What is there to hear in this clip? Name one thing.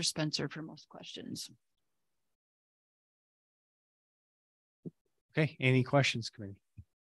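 A woman speaks calmly into a microphone, heard through an online call.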